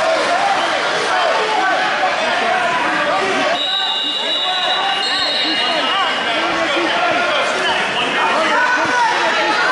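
A crowd of spectators chatters and shouts across a large echoing hall.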